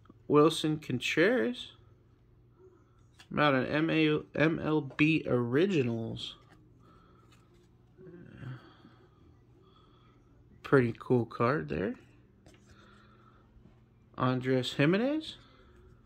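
Trading cards slide and rustle against each other as they are shuffled by hand.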